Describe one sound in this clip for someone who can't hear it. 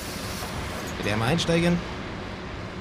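Bus doors hiss open.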